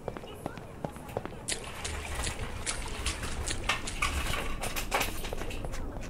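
Water splashes with wading footsteps in a large echoing hall.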